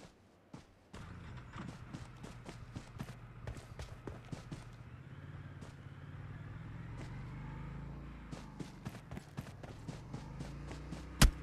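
Footsteps run quickly over grass.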